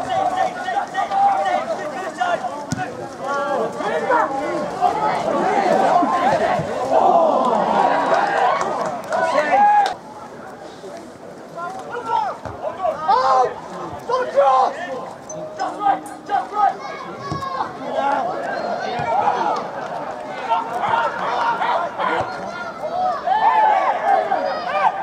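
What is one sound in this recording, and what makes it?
A crowd of spectators cheers and murmurs.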